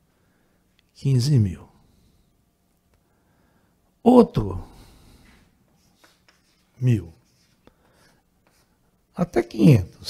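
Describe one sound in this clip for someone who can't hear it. An older man speaks through a headset microphone in short, calm phrases with pauses.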